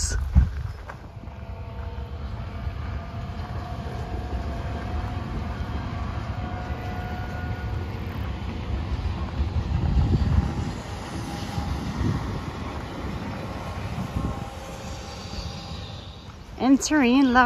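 A high-speed train rushes past with a steady rumble.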